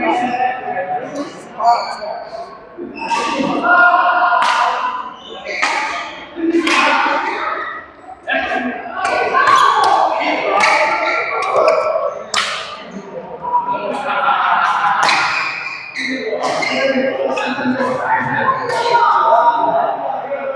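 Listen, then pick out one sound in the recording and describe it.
Men call out and talk across an echoing hall.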